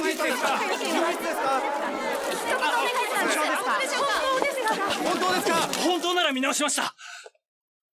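A crowd of men and women shout questions over one another with urgency.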